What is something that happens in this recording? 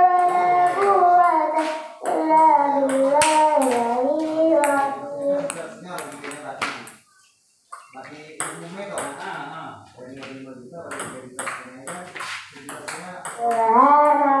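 A table tennis ball clicks back and forth on a table and paddles.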